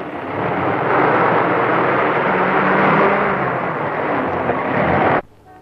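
A truck engine rumbles loudly as the truck drives past close by.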